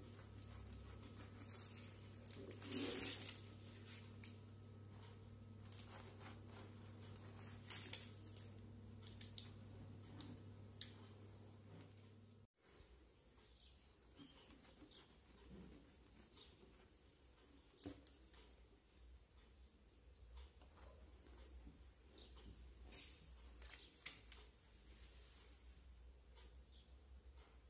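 A knife cuts through soft cake and taps against a tray underneath.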